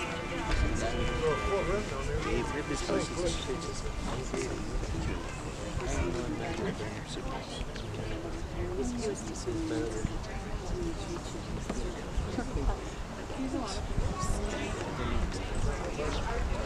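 A crowd of adults chats and murmurs outdoors.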